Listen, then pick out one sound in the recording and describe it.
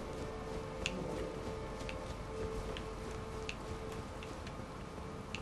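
Footsteps run quickly across a hard stone floor.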